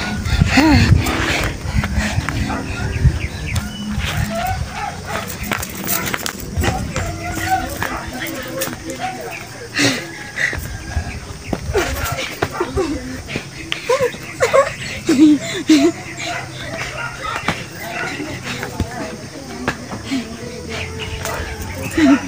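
A boy shouts and laughs nearby.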